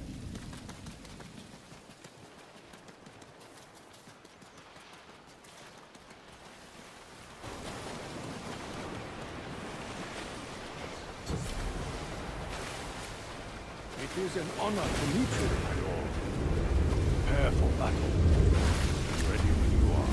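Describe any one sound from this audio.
Footsteps run over stone and earth.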